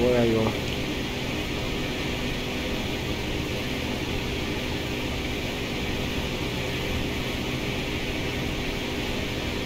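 A small aircraft's engine drones steadily.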